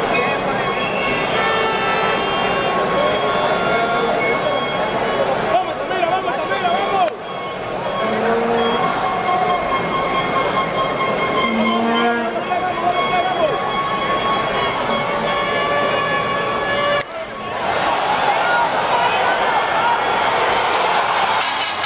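A large crowd chatters and cheers in an open stadium.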